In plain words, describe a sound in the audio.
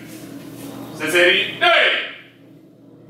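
A man calls out loudly in a room with echo.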